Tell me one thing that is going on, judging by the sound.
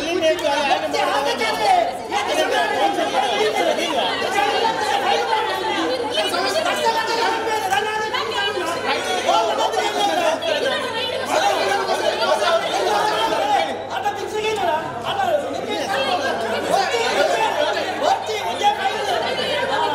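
A crowd of men shout and argue loudly over one another.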